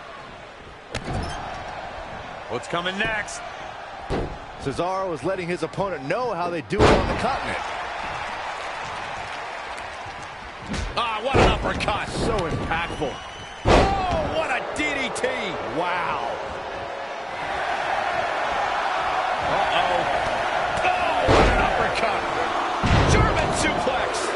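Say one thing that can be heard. Bodies slam onto a wrestling mat with heavy thuds.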